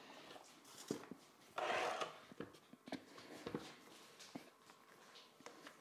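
Hands squish and knead dough in a bowl.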